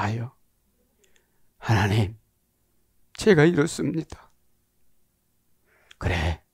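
A middle-aged man speaks with animation into a headset microphone, pausing between phrases.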